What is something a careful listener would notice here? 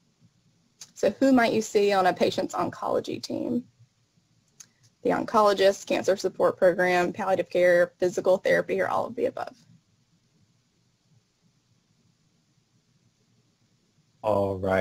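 A young woman speaks calmly through an online call microphone.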